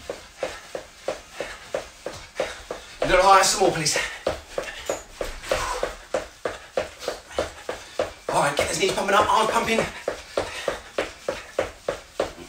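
Feet thump rapidly and steadily on a floor.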